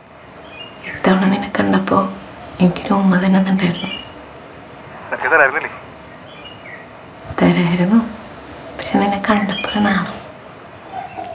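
A young woman talks softly and cheerfully on a phone.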